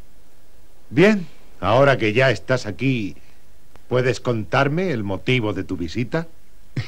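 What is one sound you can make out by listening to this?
A man speaks sharply and forcefully at close range.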